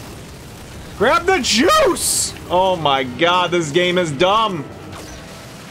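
A man exclaims loudly and with animation close to a microphone.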